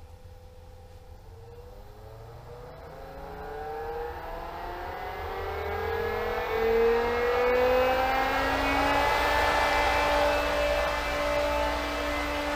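A pump motor starts up and whines higher and higher as it speeds up.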